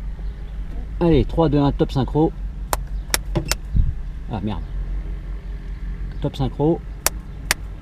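A man speaks over a headset intercom.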